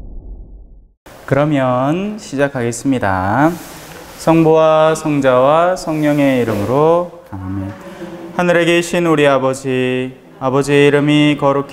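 A man prays aloud in a slow, sing-song voice close by.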